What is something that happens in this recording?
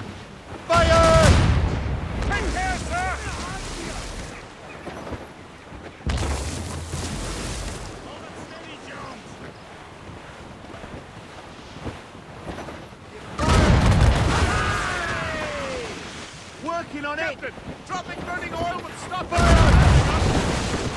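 Cannons fire with loud, booming blasts.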